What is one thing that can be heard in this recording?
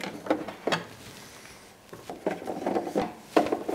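A screwdriver clicks and scrapes against a plastic casing.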